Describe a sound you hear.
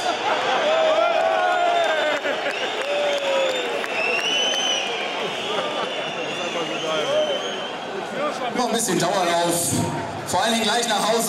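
A man speaks through a handheld microphone over stadium loudspeakers.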